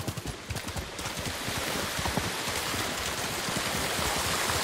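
Water splashes as a horse runs through a stream.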